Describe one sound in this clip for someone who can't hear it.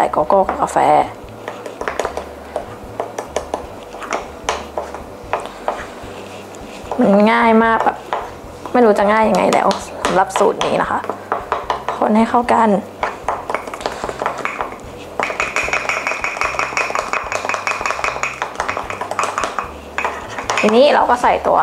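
A metal spoon scrapes and clinks inside a cup.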